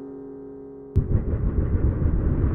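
A rocket launches with a deep, rumbling roar.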